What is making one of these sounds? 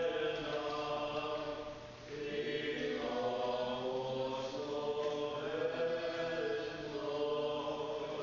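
A man chants a slow, sustained melody in a large, echoing hall.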